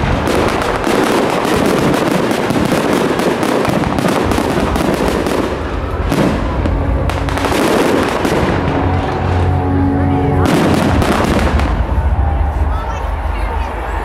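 Fireworks burst and crackle loudly overhead.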